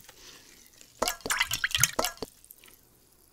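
A liquid pours from a bottle into a metal bowl close up.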